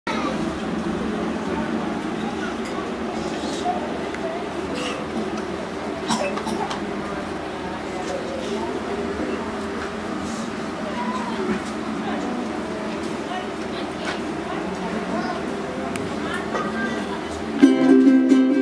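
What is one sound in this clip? A group of young people murmur and talk quietly nearby.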